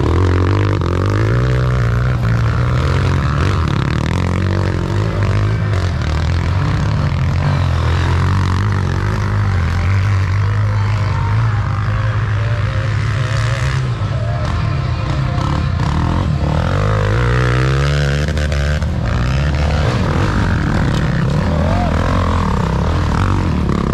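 Dirt bike engines rev loudly and roar up a hill outdoors.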